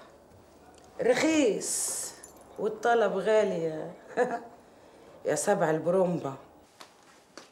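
A woman speaks loudly and angrily, close by.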